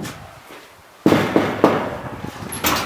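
A metal gate latch clicks and rattles.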